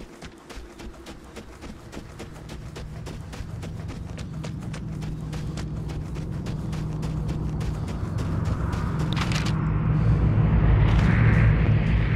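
Wind blows outdoors and slowly grows stronger.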